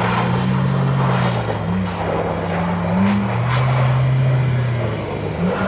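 A heavy diesel engine rumbles steadily nearby.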